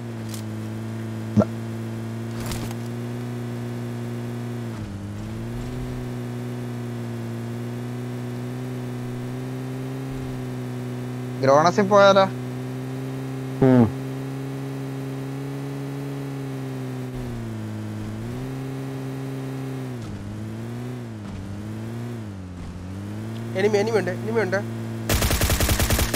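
A vehicle engine drones steadily, dipping and rising in pitch as it changes speed.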